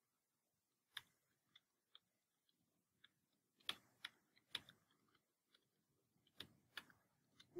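Keys click sharply on a computer keyboard in short bursts.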